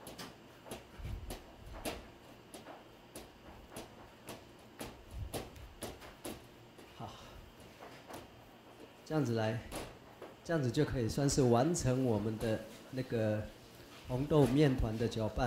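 Dough thumps and slaps as it is kneaded.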